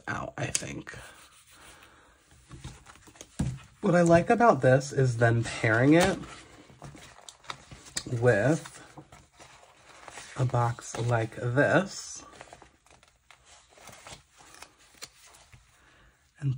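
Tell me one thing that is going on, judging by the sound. Paper sheets rustle and crinkle as they are handled.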